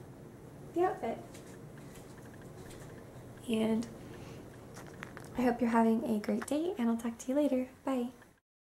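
A young woman talks animatedly, close to the microphone.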